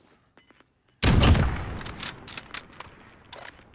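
A sniper rifle fires a single loud shot that echoes and fades.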